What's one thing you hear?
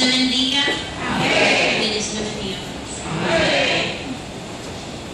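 An audience cheers and shouts.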